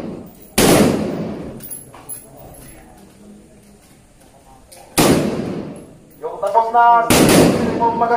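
A rifle fires single loud shots that ring out and echo outdoors.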